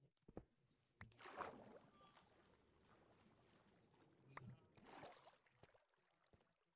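Water splashes and gurgles.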